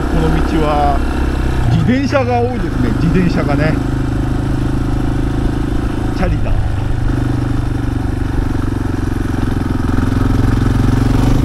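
A motorcycle engine drones steadily while riding.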